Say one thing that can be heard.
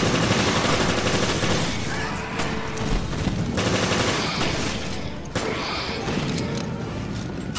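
A monster growls and snarls.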